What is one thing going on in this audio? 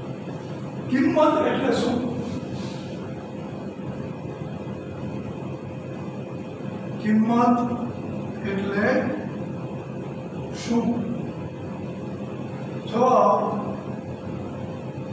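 A man speaks in short bursts, calmly, nearby.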